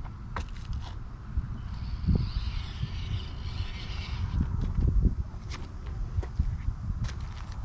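Plastic tyres scrape and click over rough stone.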